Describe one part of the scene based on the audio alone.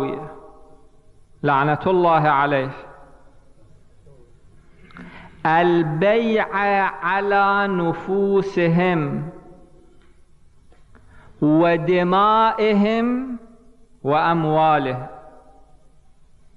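A man speaks with animation into a microphone, in phrases with pauses, in an echoing room.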